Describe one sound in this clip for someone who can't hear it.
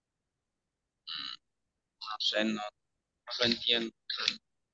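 A woman speaks in short bursts over an online call.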